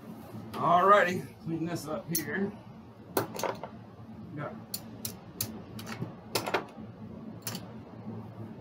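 Casino chips click and clack as they are stacked and moved.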